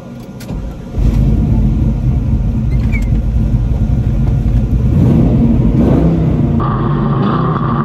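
A car engine rumbles loudly and deeply.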